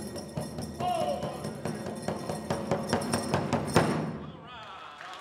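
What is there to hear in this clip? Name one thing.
Bells jingle rhythmically as a dancer moves.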